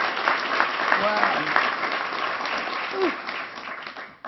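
A few people in the audience cheer during the applause.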